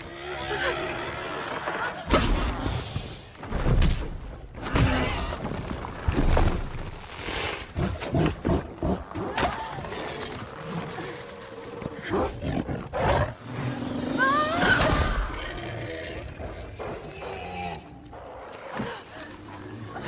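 A young woman gasps and cries out in fear.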